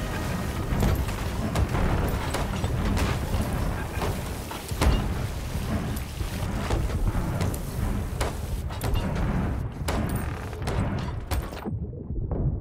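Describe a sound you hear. Water sprays and gushes through holes in a wooden hull.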